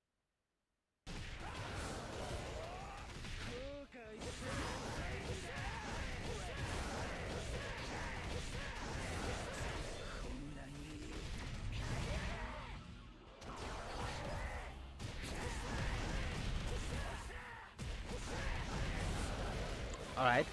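Video game battle music and hit effects play loudly.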